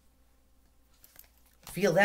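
Cards shuffle in a woman's hands.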